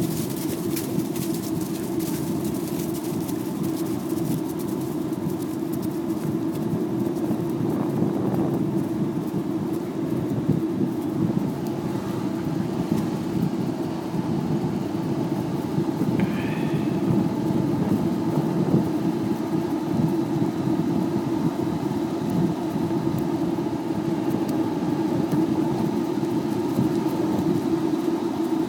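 Wind rumbles steadily across a microphone outdoors.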